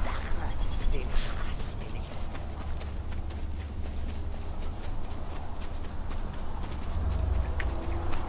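Footsteps thud quickly on grass.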